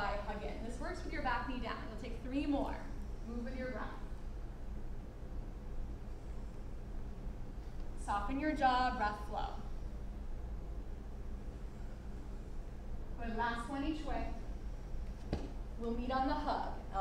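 A woman speaks calmly, giving instructions in a room with a slight echo.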